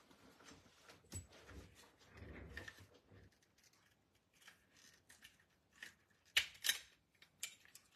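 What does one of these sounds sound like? A hand punch clicks and crunches through paper.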